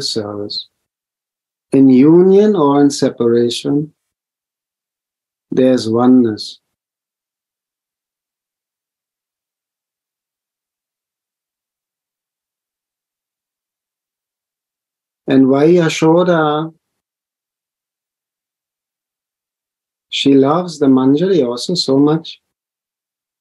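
A middle-aged man speaks calmly in short phrases over an online call, with long pauses between them.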